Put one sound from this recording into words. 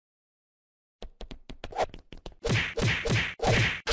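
Quick punches and hits thud and smack in a fight.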